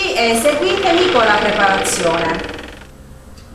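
A woman speaks with animation, close to the microphone.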